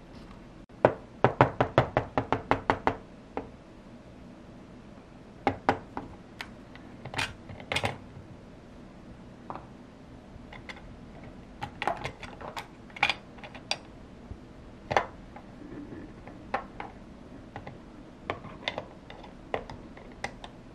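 Small plastic toy pieces click and clatter as they are handled.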